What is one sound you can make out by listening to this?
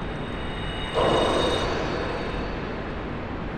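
A magic spell bursts with a bright shimmering whoosh.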